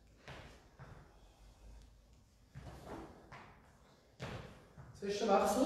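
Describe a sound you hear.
Feet stamp and shuffle on a hard floor.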